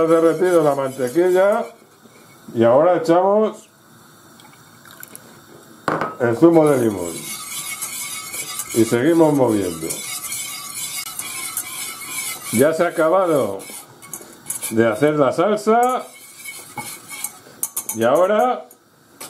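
A wire whisk scrapes and taps rapidly against a metal pot.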